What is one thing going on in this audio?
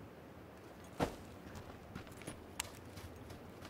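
Gunshots crack a few times.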